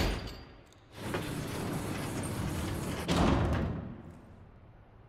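A heavy metal gate rattles and slides open.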